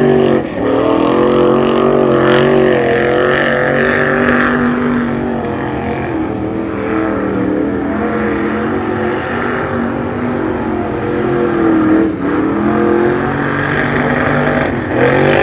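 Mud splashes and sprays under spinning tyres.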